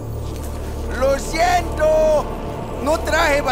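A man speaks apologetically.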